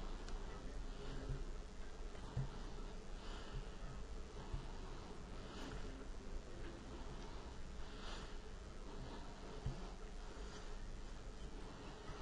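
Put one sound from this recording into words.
Fingers rub and crumble soft food in a glass dish.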